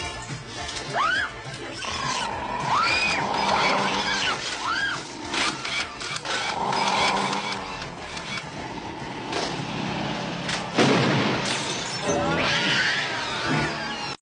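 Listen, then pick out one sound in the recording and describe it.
Small creatures screech and chatter in high, squeaky voices.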